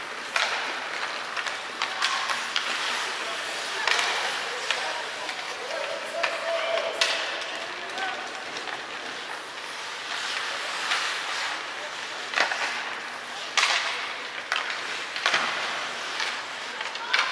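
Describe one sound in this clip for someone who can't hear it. Skate blades scrape and hiss on ice in a large echoing arena.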